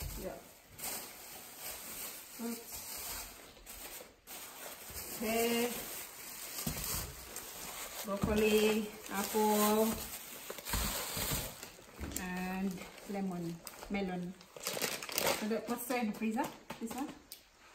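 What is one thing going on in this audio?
Plastic bags rustle and crinkle.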